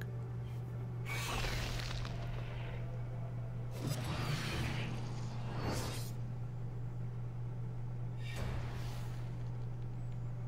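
Swooshing game sound effects play in bursts.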